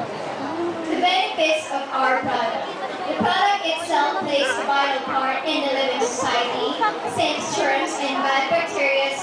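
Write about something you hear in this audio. A second young woman speaks clearly into a microphone, amplified over loudspeakers.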